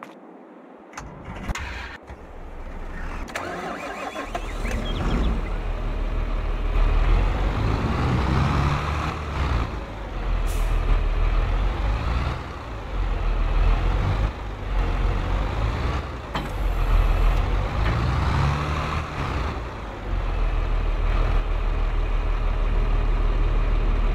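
A tractor engine rumbles and revs as the tractor drives about.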